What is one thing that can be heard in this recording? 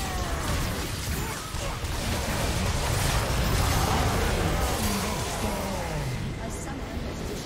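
Video game battle sound effects of spells and blade strikes clash.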